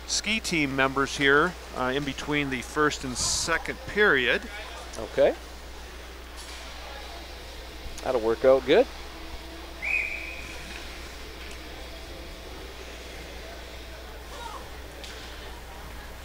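Skates scrape and glide on ice in a large echoing rink.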